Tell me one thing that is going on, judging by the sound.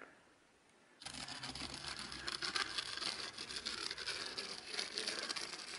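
A wooden board scrapes roughly across wet concrete.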